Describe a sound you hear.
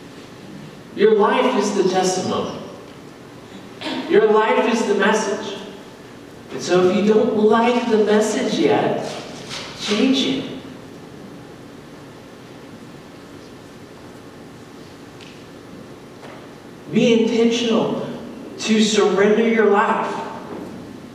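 A man speaks calmly through a microphone in a large echoing hall, pausing between phrases.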